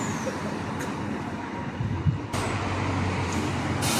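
A bus pulls away from the kerb.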